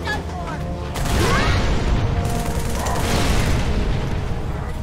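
Gunfire and blasts crackle nearby.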